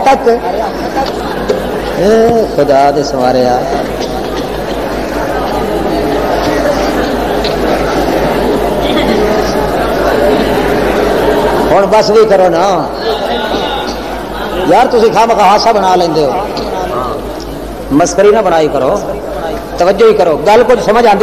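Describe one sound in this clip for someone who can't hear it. A middle-aged man speaks with animation through a microphone and loudspeakers.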